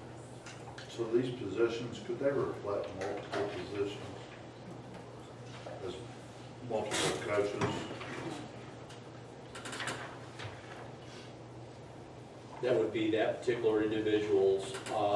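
Men speak calmly, heard from across a quiet room.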